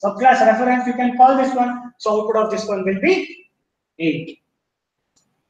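A man speaks calmly into a microphone, as if lecturing.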